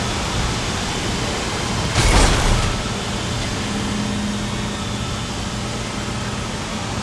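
A low mechanical hum drones steadily throughout.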